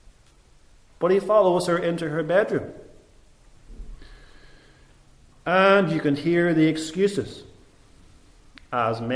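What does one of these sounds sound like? A middle-aged man speaks calmly and slowly into a microphone, with pauses.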